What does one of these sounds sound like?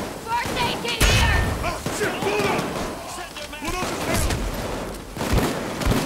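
A gun fires with loud sharp bangs.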